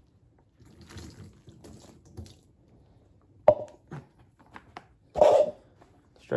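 A plastic bottle clicks open and shut.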